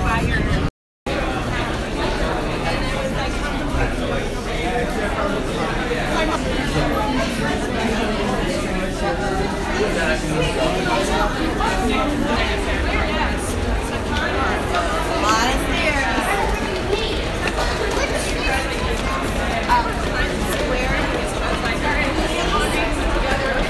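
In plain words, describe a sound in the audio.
A crowd of people chatter and murmur in an echoing space.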